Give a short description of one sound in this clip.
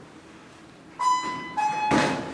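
An elevator button beeps once when pressed.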